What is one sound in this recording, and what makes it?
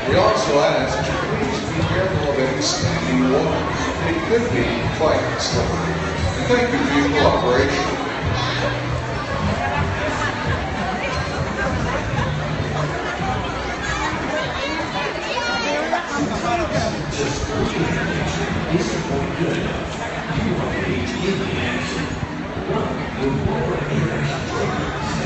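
A crowd chatters and calls out nearby in a large echoing space.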